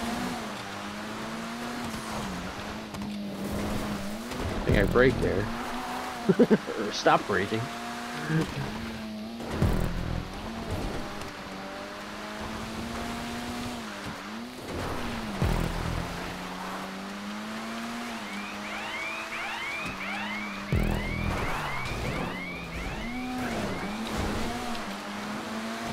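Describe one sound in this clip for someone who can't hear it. A car engine revs steadily, rising and falling as gears change.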